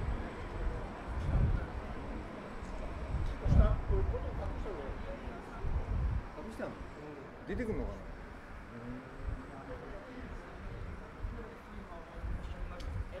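People chatter in the distance.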